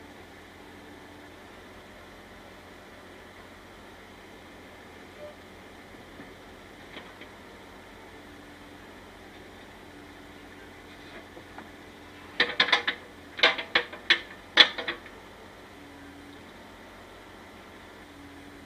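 A small excavator engine idles with a steady low hum.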